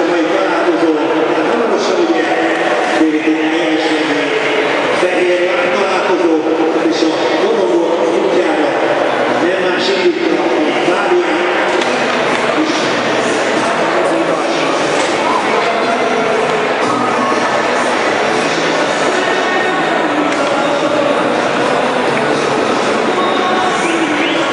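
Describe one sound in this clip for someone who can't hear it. A woman speaks into a microphone, heard through loudspeakers echoing around a large arena.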